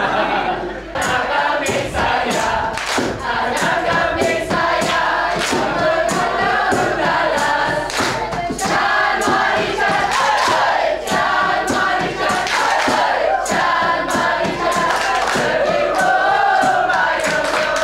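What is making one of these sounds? A group of people claps their hands in rhythm.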